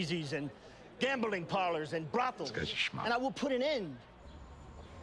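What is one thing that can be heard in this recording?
A man speaks loudly with animation to a crowd outdoors.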